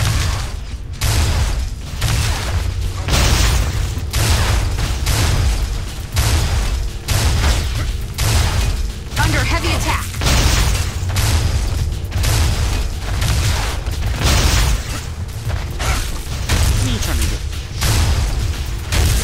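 A heavy energy weapon fires in loud, rapid bursts.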